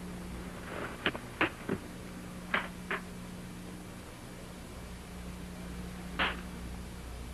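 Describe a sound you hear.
Metal latches click sharply as a man opens a case.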